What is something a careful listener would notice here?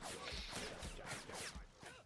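Laser beams fire with sharp buzzing blasts.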